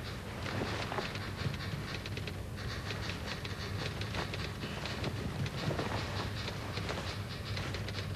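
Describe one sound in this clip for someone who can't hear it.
Cloth rustles as a man pulls on a jacket.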